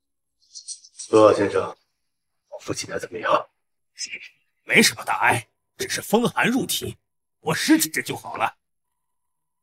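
A middle-aged man speaks calmly and confidently close by.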